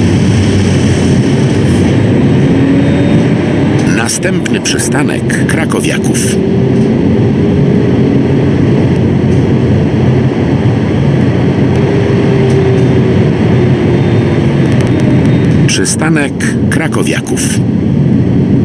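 A tram rolls along the rails with a steady low motor hum.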